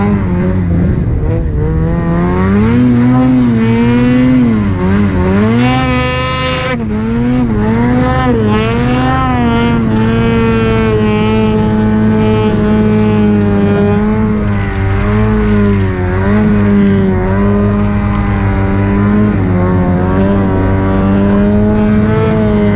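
A snowmobile engine roars close by, revving up and down.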